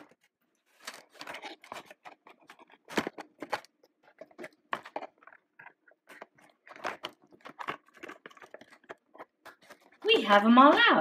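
Small plastic toys click and tap softly as they are handled.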